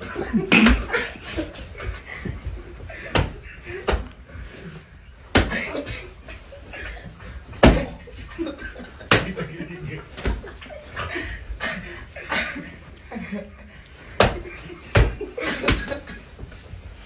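Bodies thump and slide on a floor.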